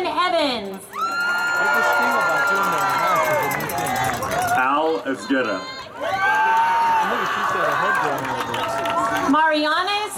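A crowd cheers and whoops.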